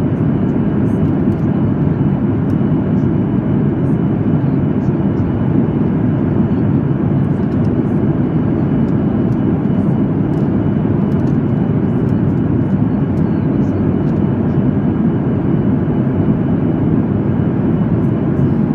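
A jet engine roars steadily from inside an airliner cabin.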